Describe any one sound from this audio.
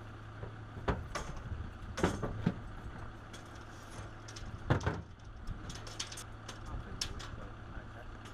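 A road sign knocks and rattles against its metal stand.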